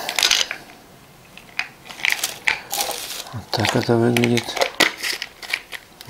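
Pills rattle in a plastic bottle.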